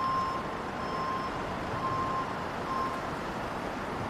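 A vehicle beeps in short, repeated tones.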